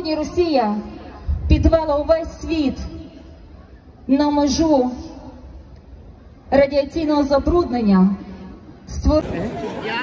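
A woman sings loudly through loudspeakers.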